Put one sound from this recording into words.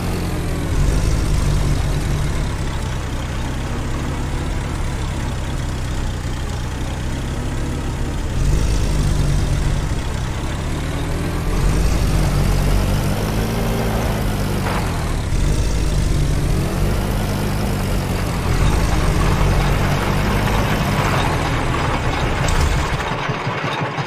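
A jeep engine rumbles steadily, revving up and down.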